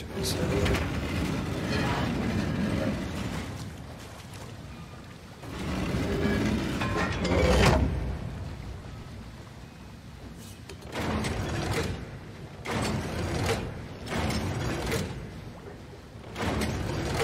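A heavy stone mechanism grinds and rumbles in bursts as it turns.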